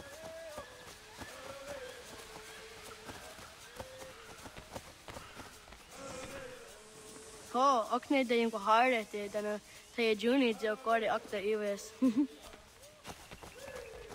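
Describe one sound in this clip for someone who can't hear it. Footsteps run over grass and leaves.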